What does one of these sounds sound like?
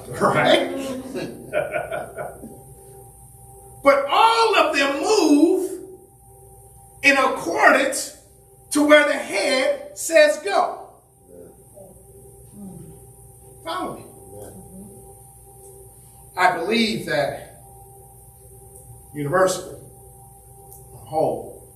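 A man preaches with animation through a microphone, with pauses between phrases.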